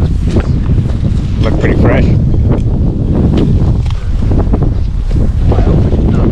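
A hoe scrapes and chops at dry grass and soil.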